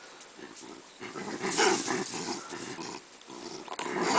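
An animal chews and crunches on food up close.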